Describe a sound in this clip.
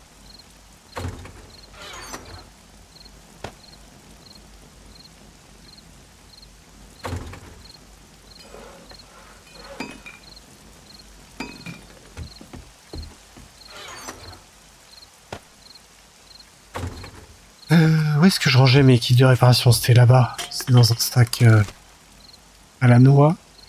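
A wooden crate lid knocks open and thuds shut several times.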